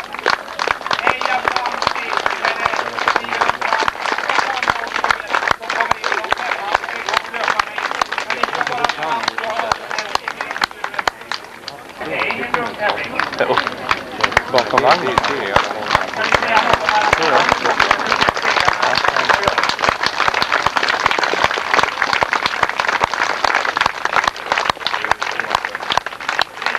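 A crowd of spectators cheers and claps outdoors.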